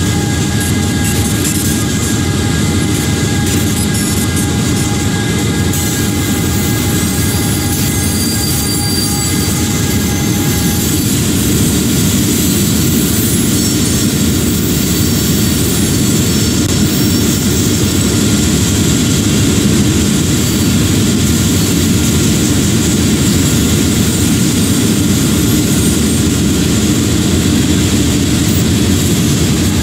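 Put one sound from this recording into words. Train wheels clatter on rails.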